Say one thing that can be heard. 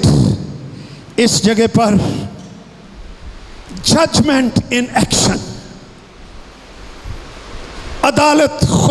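A middle-aged man speaks with emphasis into a microphone over a loudspeaker, his voice echoing in a room.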